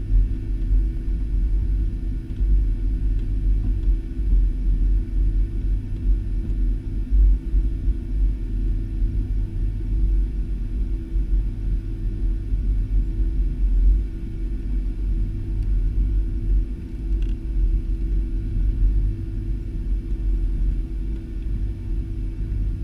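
A jet airliner's engines drone steadily inside the cabin as the plane taxis.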